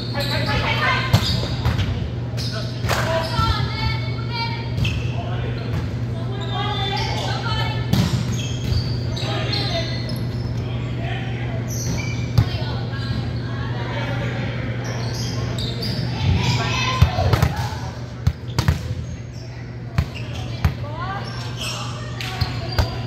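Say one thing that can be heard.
Young men and women talk and call out in a large echoing hall.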